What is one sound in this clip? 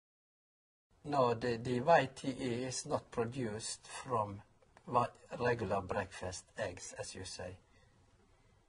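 An elderly man speaks calmly and close to a microphone.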